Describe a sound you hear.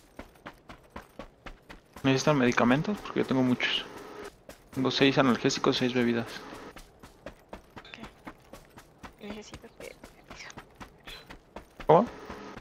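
Footsteps patter quickly over dirt and grass.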